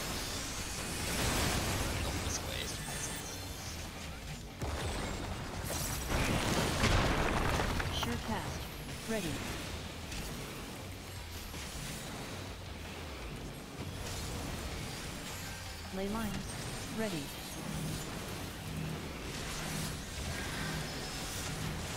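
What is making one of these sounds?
Game spell effects crackle and burst in bursts of noise.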